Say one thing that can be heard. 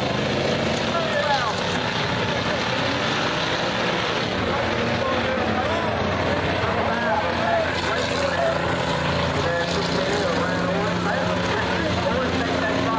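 Race car engines roar steadily around a dirt track outdoors.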